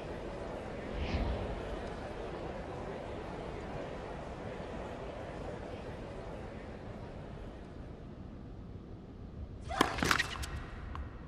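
A tennis ball is struck with a racket.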